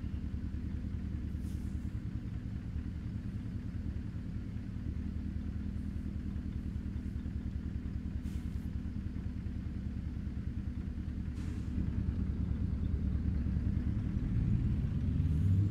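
A truck's diesel engine idles with a low, steady rumble, then revs up as the truck pulls away.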